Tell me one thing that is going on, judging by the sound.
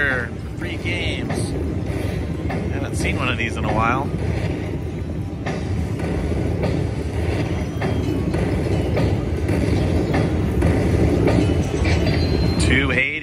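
A slot machine plays loud, booming bonus music and chimes as the winnings climb.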